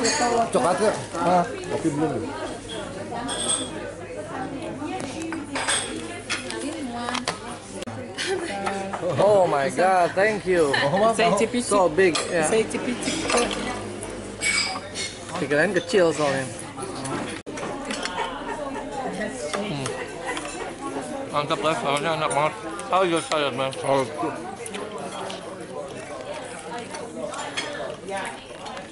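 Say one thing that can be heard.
A crowd murmurs in a busy room.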